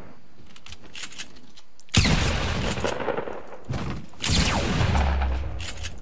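A pickaxe strikes in a video game.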